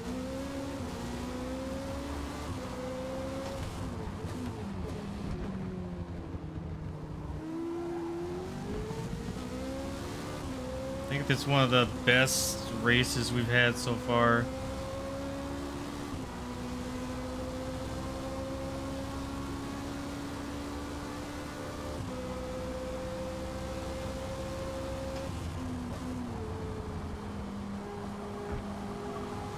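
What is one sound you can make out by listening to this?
A race car engine roars, rising in pitch and dropping as it shifts gears.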